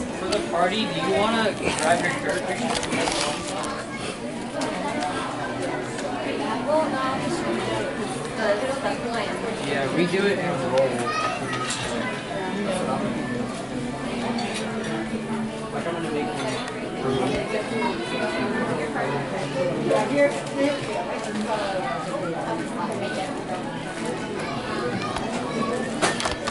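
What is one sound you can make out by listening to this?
A crowd of people chatter all around in a busy, echoing indoor room.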